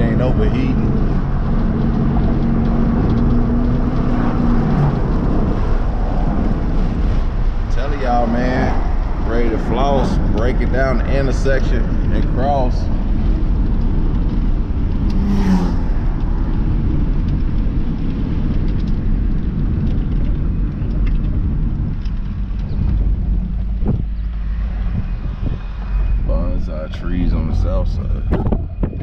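A car engine hums and road noise rumbles from inside a moving car.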